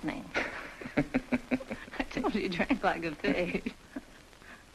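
A woman speaks softly and warmly up close.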